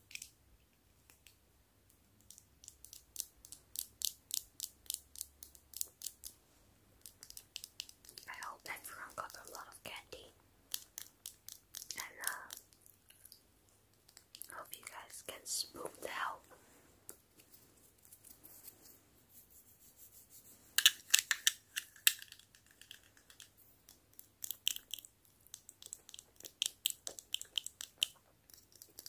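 Long fingernails tap on plastic light covers close to the microphone.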